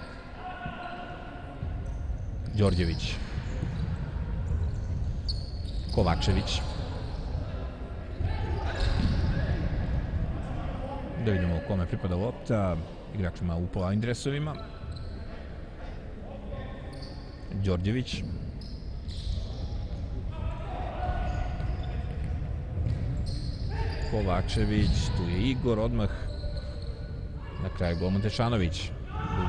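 Men shout across a large echoing hall.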